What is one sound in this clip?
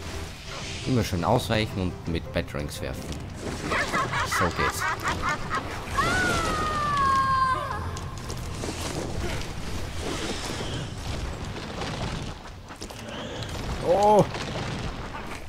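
A monstrous creature screeches and growls.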